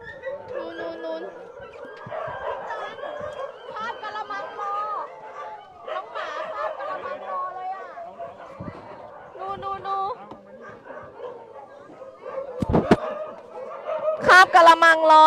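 Dogs bark and yelp close by.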